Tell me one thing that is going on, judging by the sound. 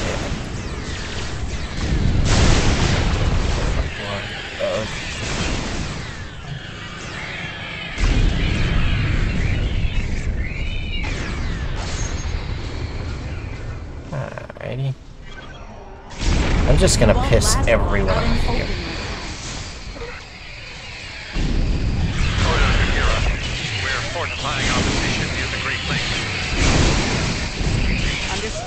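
Laser blasts and energy weapons fire in a game battle.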